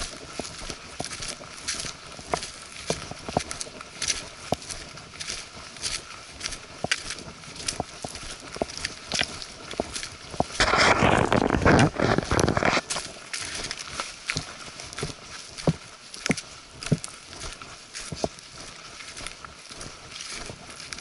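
Footsteps crunch on dry leaves at a steady walking pace.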